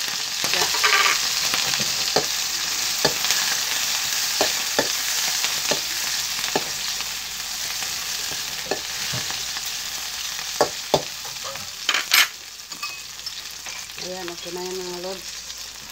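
Vegetables sizzle in a hot wok.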